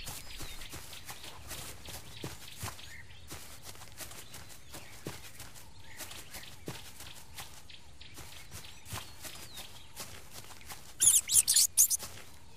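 A tiger's paws patter on the ground as it runs.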